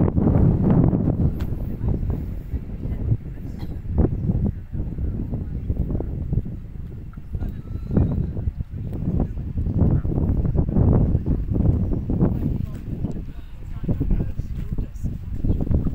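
Wind gusts strongly outdoors, rumbling against the microphone.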